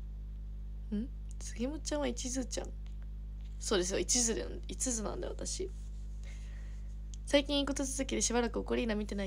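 A young woman talks softly and close to the microphone.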